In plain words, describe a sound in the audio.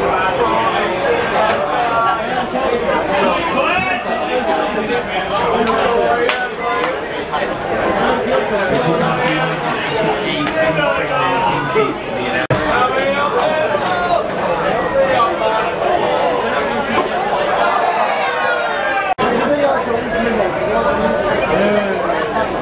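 A crowd chatters and calls out from the stands.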